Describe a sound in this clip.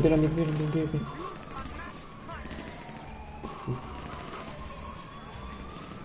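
Footsteps run over dirt.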